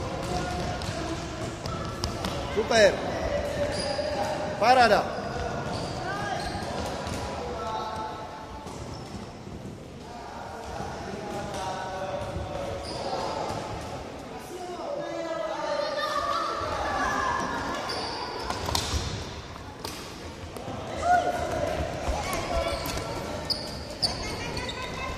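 Children shout and call out as they play in a large echoing hall.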